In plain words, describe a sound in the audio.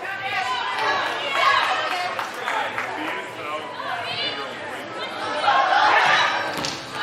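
Young women shout and call out to each other across an echoing indoor hall.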